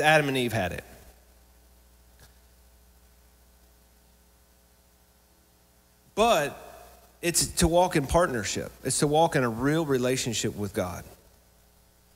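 A man speaks with animation through a microphone, with pauses.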